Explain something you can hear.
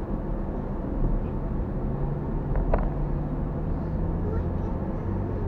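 Road and wind noise rumble low and steady.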